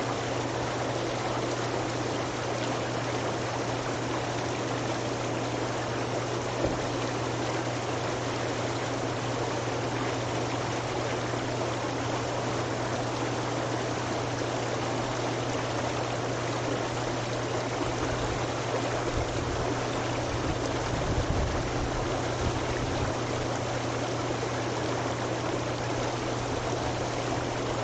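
Water bubbles and churns steadily in a hot tub.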